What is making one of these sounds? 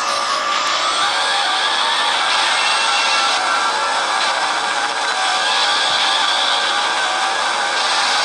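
A game's motorbike engine hums steadily as the bike rides.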